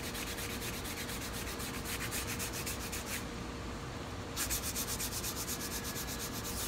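A hand rubs quickly back and forth on a guitar's wooden body.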